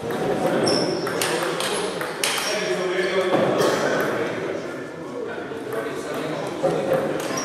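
A table tennis ball clicks against paddles and the table in an echoing hall.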